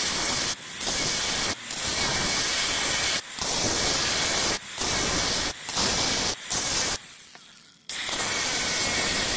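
An angle grinder screeches as its disc cuts into steel, pausing briefly now and then.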